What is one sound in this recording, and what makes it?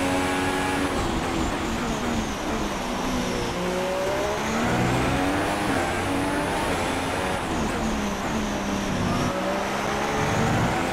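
A Formula One car engine drops in pitch while downshifting under braking.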